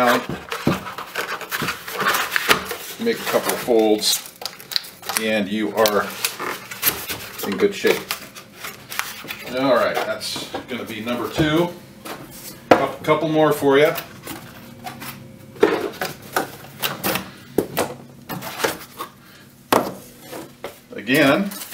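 A plastic rack knocks and clatters against a wooden surface.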